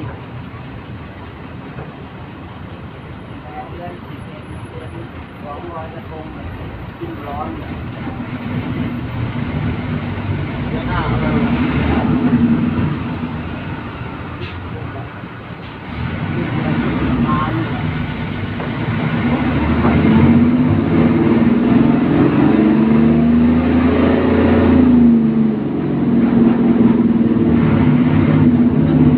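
A bus engine rumbles and revs steadily.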